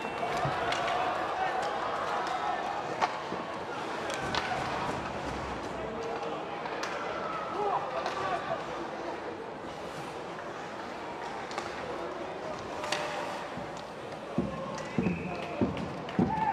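Hockey sticks clack against the puck and each other.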